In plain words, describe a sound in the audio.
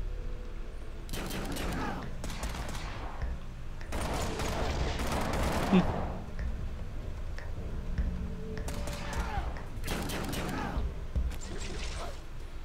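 Gunshots crack in a quick skirmish.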